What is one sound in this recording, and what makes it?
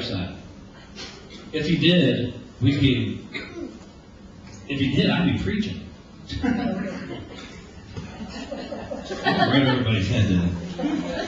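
A man speaks with animation through a microphone and loudspeakers in an echoing room.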